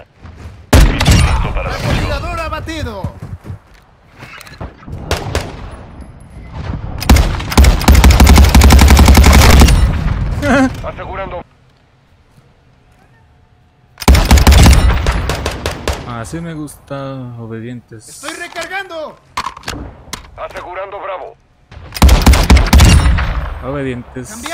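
Gunshots fire in quick bursts, close by.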